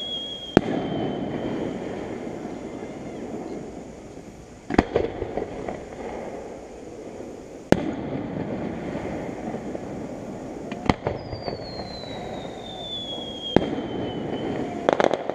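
Firework rockets whistle as they rise.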